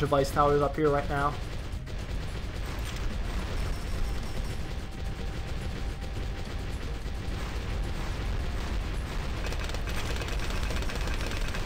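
Balloons pop rapidly and continuously in a game.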